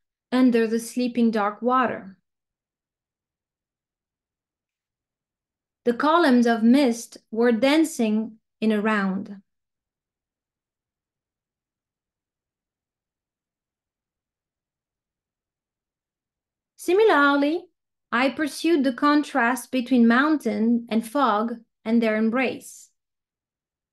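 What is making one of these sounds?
A woman speaks calmly through an online call, pausing between phrases.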